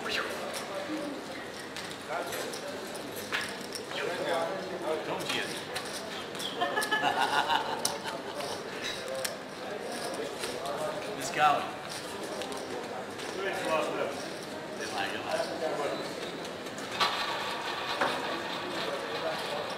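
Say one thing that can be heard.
A roulette wheel spins with a ball rattling around it.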